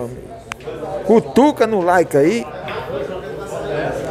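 Pool balls clack together.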